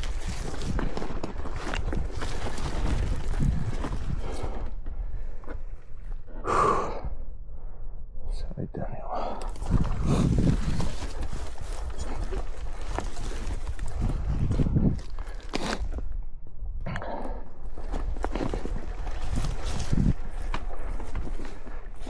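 A dirt bike engine rumbles and revs close by.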